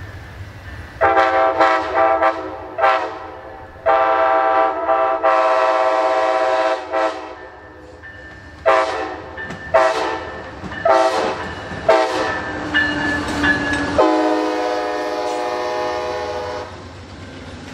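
A train horn blasts loudly in repeated long and short blows.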